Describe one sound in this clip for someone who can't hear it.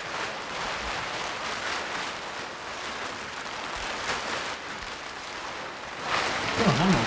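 Stiff plastic fabric rustles and crinkles.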